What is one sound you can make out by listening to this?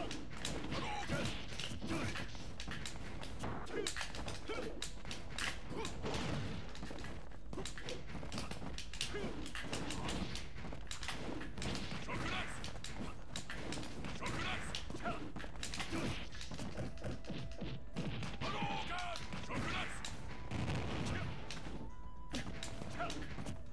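Punches, blasts and explosions crack and thud in quick bursts.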